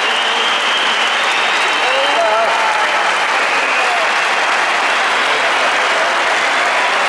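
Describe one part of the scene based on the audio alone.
A dense crowd chatters and shouts loudly all around.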